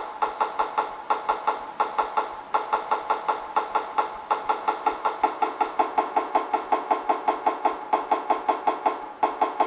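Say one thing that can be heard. A computer program plays a short clacking brick sound effect rapidly, over and over.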